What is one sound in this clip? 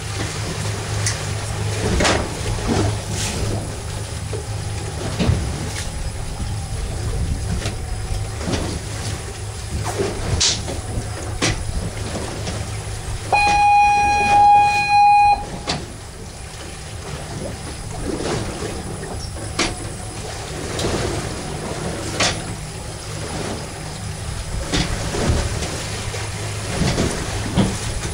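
Wind blows across the deck.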